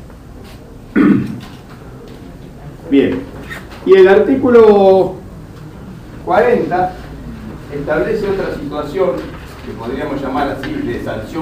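A middle-aged man speaks into a microphone with animation.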